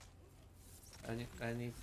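A young man speaks calmly into a microphone.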